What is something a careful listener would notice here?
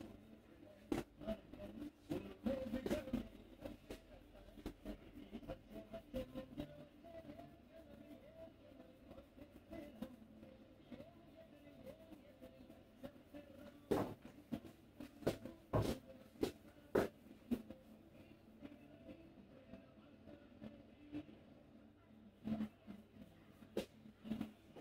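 Sharp taps and pats sound on a head.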